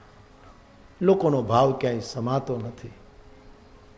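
An elderly man speaks calmly and expressively through a microphone.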